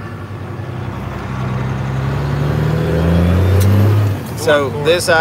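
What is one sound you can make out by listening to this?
A vehicle's engine revs higher and then drops back.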